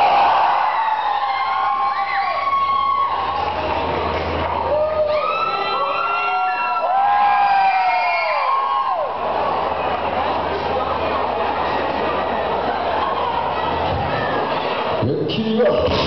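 A rock band plays loudly through loudspeakers in a large, echoing hall.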